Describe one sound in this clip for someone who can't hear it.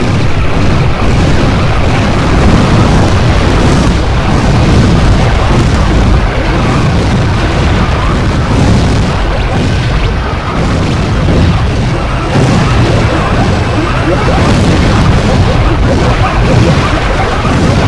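Laser shots zap repeatedly.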